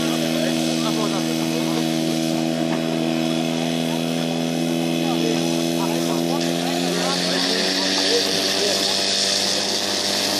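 An engine runs outdoors.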